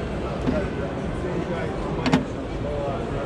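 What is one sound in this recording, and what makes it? A plastic flap clicks open.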